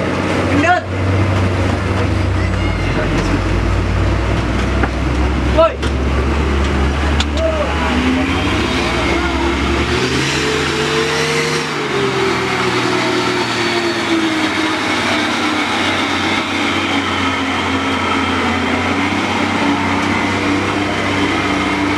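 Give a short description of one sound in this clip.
Truck tyres squelch and churn through thick mud.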